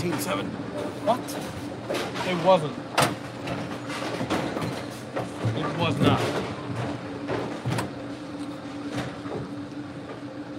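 Bowling pins clatter and crash in a large echoing hall.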